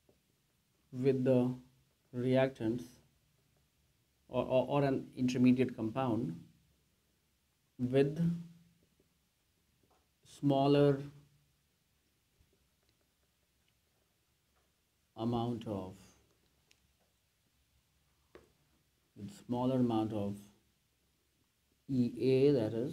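A man speaks calmly in short phrases, explaining, close by.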